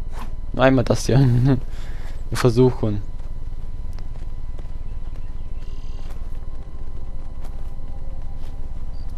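Footsteps climb stone steps.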